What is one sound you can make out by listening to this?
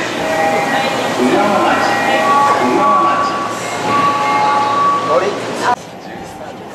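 An electronic chime plays a short, bright melody over a loudspeaker.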